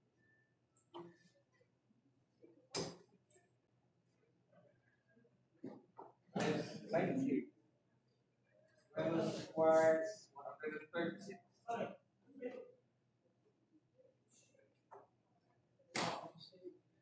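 Steel-tip darts thud into a bristle dartboard.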